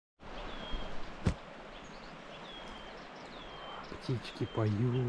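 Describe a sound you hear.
Wind blows softly through grass and leaves.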